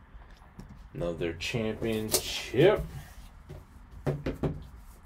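Plastic wrap crinkles and tears as it is peeled off a box.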